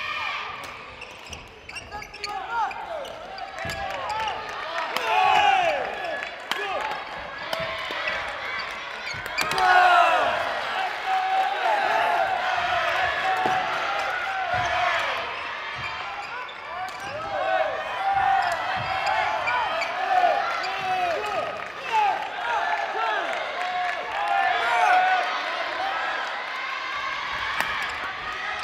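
Shoes squeak sharply on a hard court floor, over and over.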